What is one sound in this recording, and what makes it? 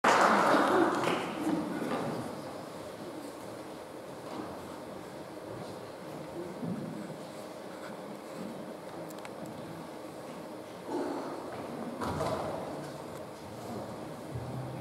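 A saxophone plays a melody in a large echoing hall.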